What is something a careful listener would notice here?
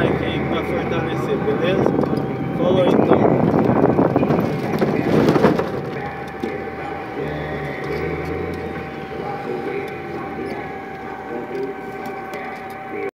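Tyres rumble on the road as the car drives along.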